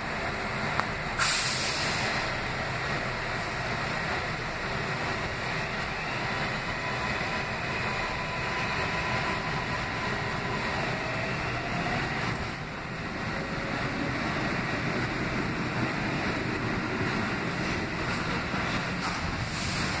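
A subway train rumbles and hums steadily as it rolls along.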